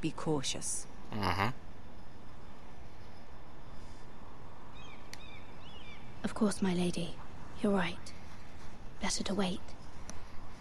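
A young woman speaks calmly and quietly.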